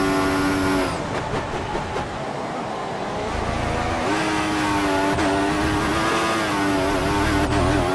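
A racing car engine slows and drops away while braking, then revs up again.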